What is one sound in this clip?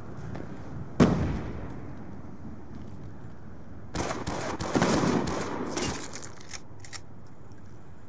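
Gunfire rattles in short, loud bursts.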